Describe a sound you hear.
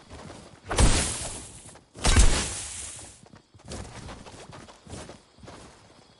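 A pickaxe thuds against wood in quick repeated blows.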